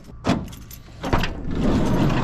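A van door handle clicks open.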